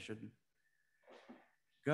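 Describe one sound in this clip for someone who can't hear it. An older man reads aloud into a microphone.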